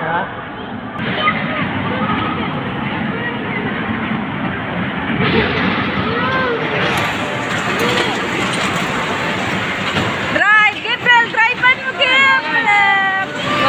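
A small ride car rumbles along its track.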